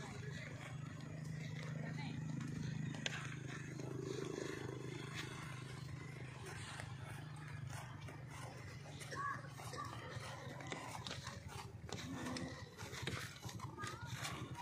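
Horse hooves thud softly on grass.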